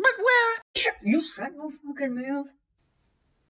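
A young man speaks in a strained, comic voice close to the microphone.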